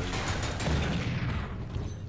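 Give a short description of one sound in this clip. An explosion bursts.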